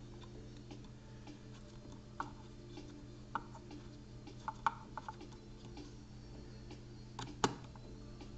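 A screwdriver scrapes and clicks while turning a screw.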